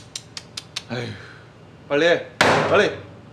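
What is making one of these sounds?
A young man speaks up close, sounding annoyed.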